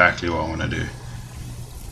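A man speaks briefly into a microphone, up close.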